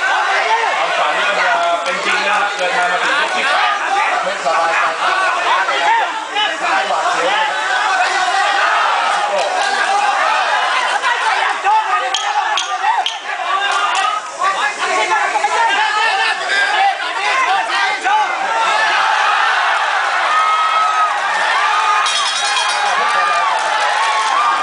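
A crowd shouts and cheers loudly all around.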